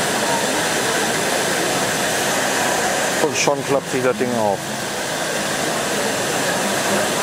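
Crowd chatter murmurs steadily through a large echoing hall.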